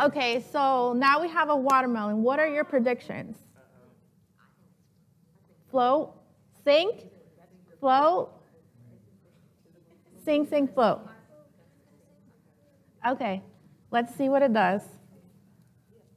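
A woman speaks with animation through a microphone, with pauses between phrases.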